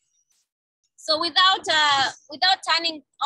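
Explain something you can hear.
A boy speaks with animation over an online call.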